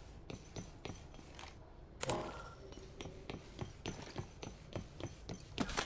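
Soft interface clicks tick as items are browsed.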